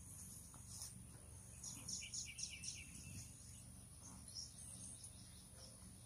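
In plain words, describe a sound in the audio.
Footsteps swish through grass close by.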